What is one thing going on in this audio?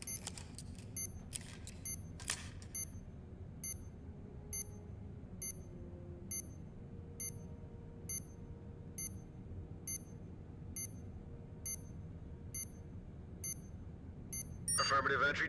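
An electronic timer beeps at a steady, quick pace.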